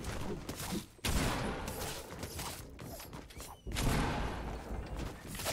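A pickaxe strikes with sharp knocks.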